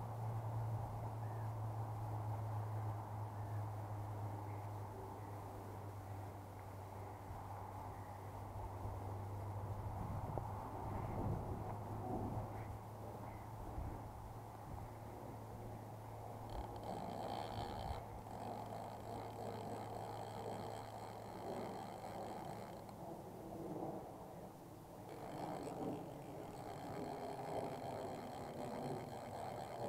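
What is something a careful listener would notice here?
A wide river flows and rushes steadily.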